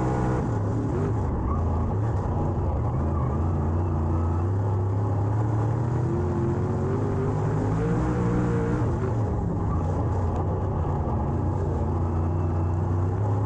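A race car engine roars loudly from inside the car, rising and falling in pitch as it speeds up and slows down.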